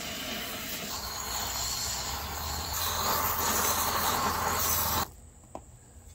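A torch roars with a steady rush of flame.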